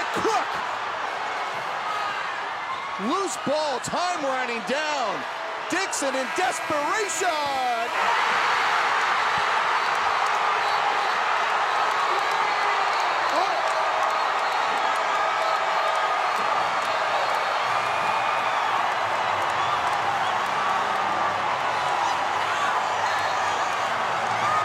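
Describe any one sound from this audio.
A large crowd cheers in an echoing arena, then bursts into a loud, steady roar.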